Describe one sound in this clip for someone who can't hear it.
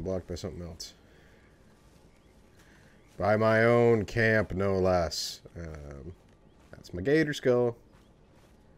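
A man speaks close up.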